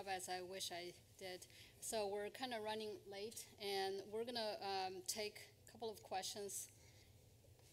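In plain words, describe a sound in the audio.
A woman speaks with animation through a microphone in a large hall.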